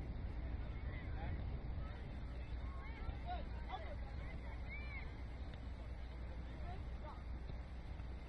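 Young players shout to one another in the distance outdoors.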